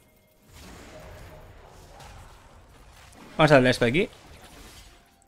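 Video game combat effects clash and whoosh softly.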